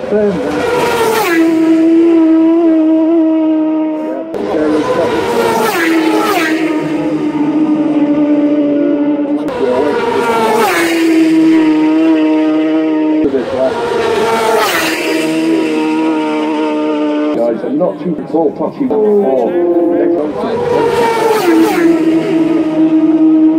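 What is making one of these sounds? Racing motorcycles roar past at high speed, one after another, their engines dropping in pitch as they go by.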